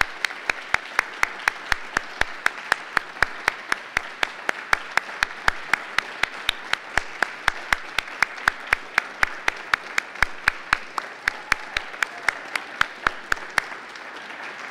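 A woman claps her hands steadily near a microphone.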